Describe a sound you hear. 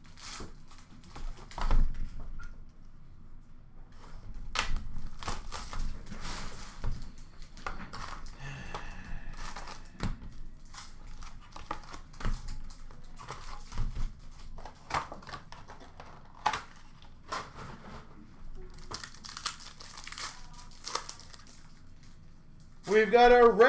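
Cardboard packs rustle and tap as hands handle them close by.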